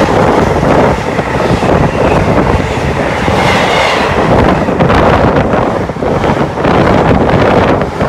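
A freight train rushes through close by with a loud roar.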